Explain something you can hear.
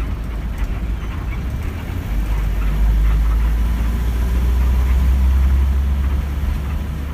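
A bus engine rumbles steadily from inside the cabin, growing louder after a couple of seconds.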